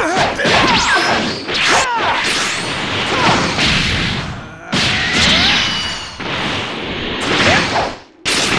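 Punches and kicks land with heavy thuds.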